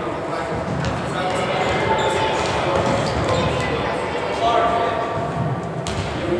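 Teenage boys call out to each other across an echoing gym.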